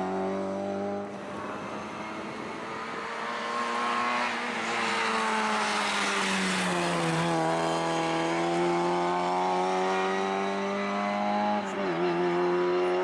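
A second rally car engine roars up close, revving high between gear changes.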